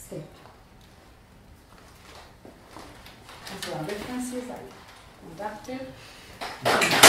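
A woman speaks to an audience through a microphone in a room.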